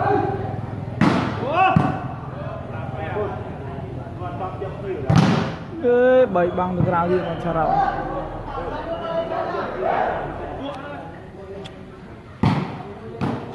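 A ball is kicked with sharp thumps.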